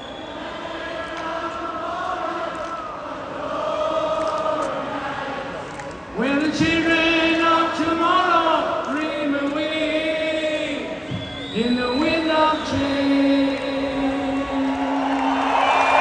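Music plays loudly through loudspeakers.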